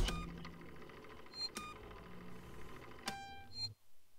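Buttons on a keypad click with short beeps.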